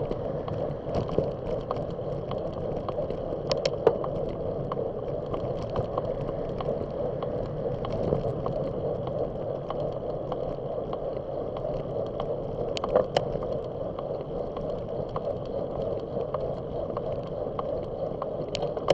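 Bicycle tyres hum on the road surface.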